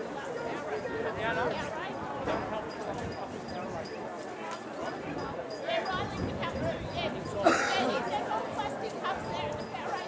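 Young men shout and call out to one another outdoors.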